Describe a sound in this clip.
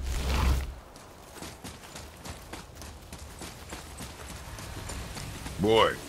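Heavy footsteps crunch on gravel.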